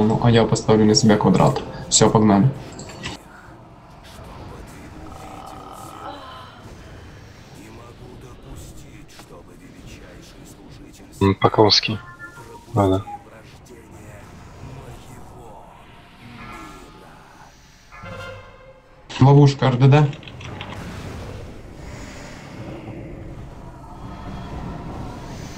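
Magic spells crackle and whoosh in a battle.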